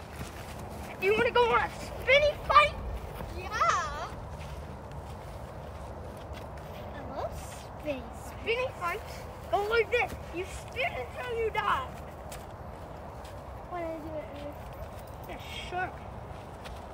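Young children talk and shout playfully close by.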